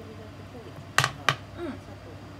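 A metal pan knocks twice against a glass stovetop.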